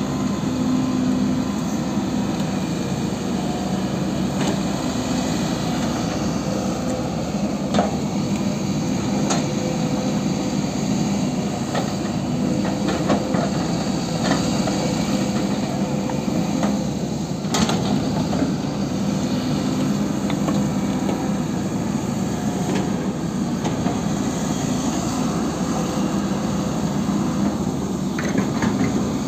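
A diesel excavator engine rumbles steadily nearby.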